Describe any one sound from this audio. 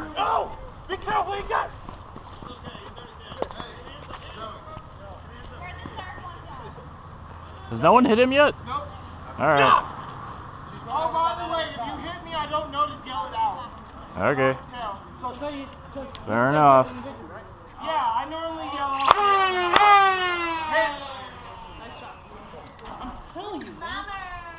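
Young boys shout and call out excitedly outdoors.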